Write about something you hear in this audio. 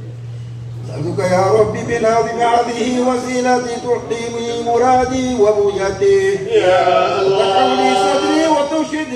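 A man chants loudly through a loudspeaker outdoors.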